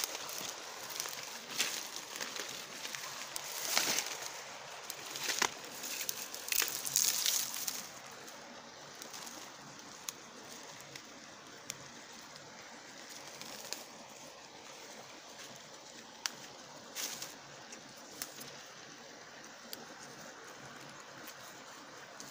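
Footsteps crunch through dry grass and twigs.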